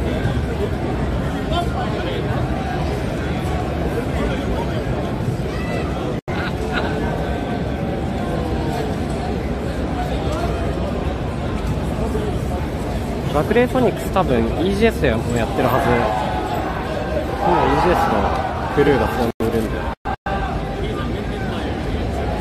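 A crowd of people chatters steadily in a large, noisy hall.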